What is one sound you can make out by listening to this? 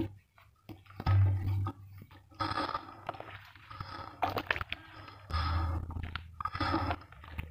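Muddy water splashes and sloshes as hands stir it.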